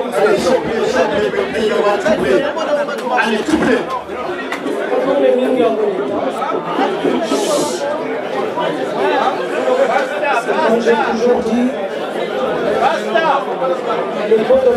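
A middle-aged man speaks with animation through a microphone, close by.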